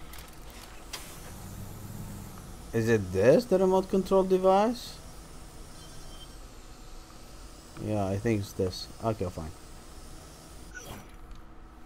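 A drone's rotors whir with a high buzz.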